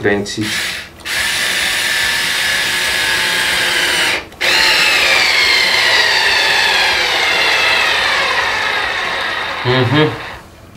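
A cordless drill whirs steadily, then winds down.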